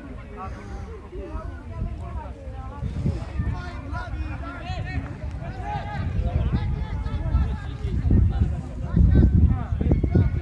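Men shout and call to one another outdoors on an open field.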